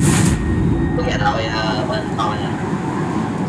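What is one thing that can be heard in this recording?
A young man speaks briefly and calmly into a nearby microphone.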